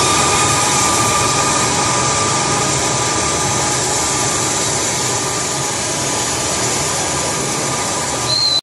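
Two electric guitars play loud, distorted rock music through amplifiers.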